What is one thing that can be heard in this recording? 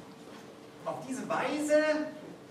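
A man speaks alone.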